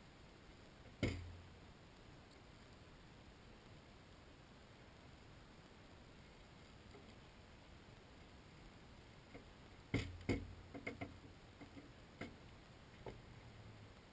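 A stick knocks and scrapes against a metal bucket.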